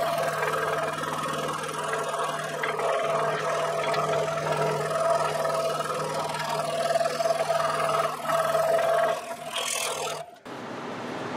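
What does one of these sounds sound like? A scroll saw buzzes steadily as it cuts through wood.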